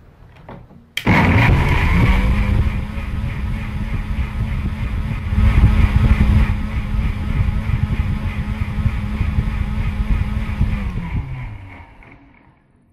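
A blender whirs loudly, then winds down.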